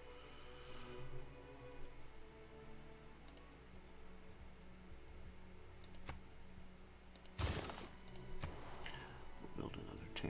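Soft game menu clicks sound as options are picked.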